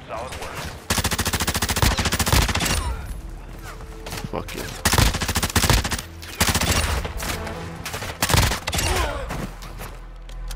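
Rapid gunfire crackles in sharp bursts.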